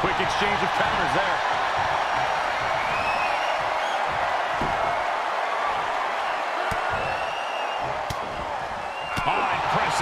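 Blows land with dull smacks.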